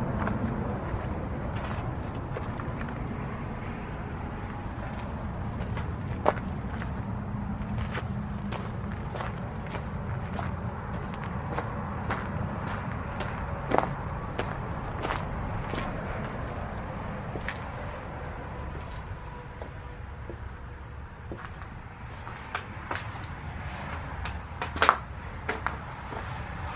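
Footsteps crunch on gravel and debris.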